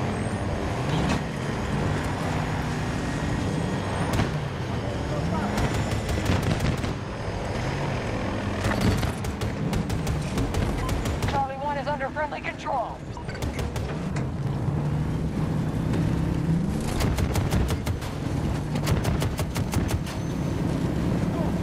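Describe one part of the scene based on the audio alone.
Gunfire and explosions crackle in bursts.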